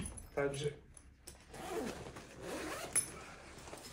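A zipper is pulled open.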